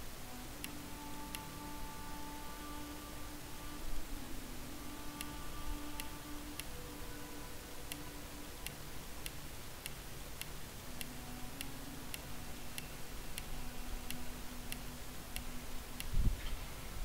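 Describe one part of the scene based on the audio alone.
Soft menu clicks tick again and again at an even pace.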